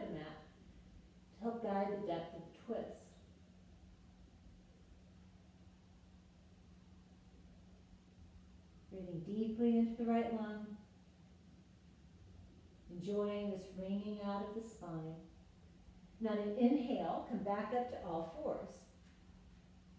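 A woman speaks calmly in short phrases, close by.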